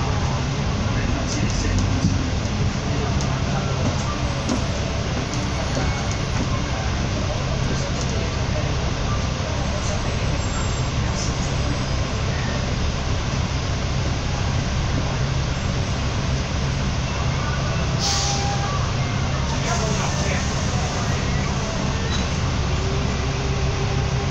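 Heavy traffic drones all around outdoors.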